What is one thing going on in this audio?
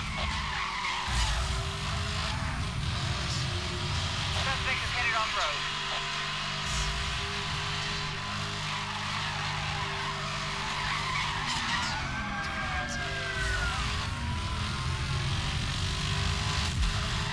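A car engine roars at high speed throughout.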